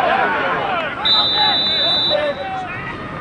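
A referee blows a long blast on a whistle.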